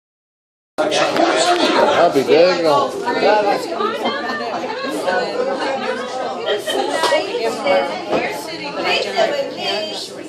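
Many men and women chatter and talk over one another nearby.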